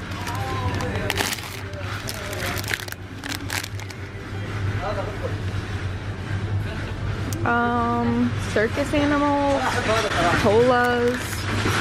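Plastic sweet packets crinkle as a hand handles them.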